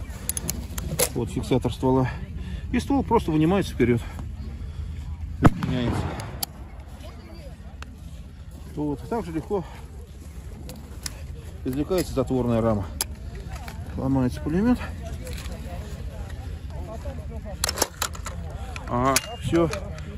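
Metal parts of a gun click and clack as they are handled.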